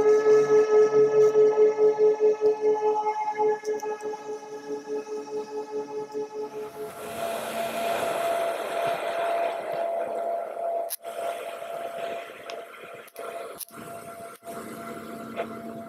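A propeller engine drones loudly with a throbbing hum.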